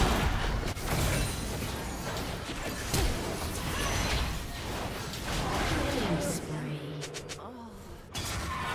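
Game spell effects whoosh, crackle and blast in a busy fight.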